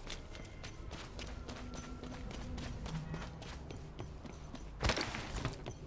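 Footsteps thud quickly on dirt and metal.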